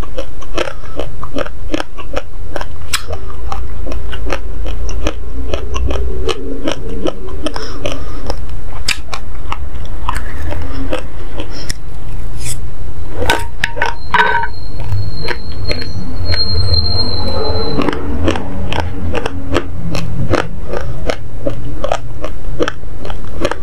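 A young woman chews and crunches dry grains close to a microphone.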